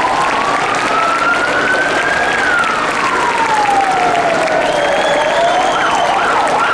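A police van siren wails up and down slowly.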